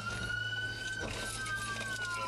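A car bumps into another car with a dull thud.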